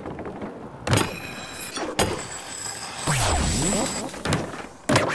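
A skateboard grinds and scrapes along a metal rail.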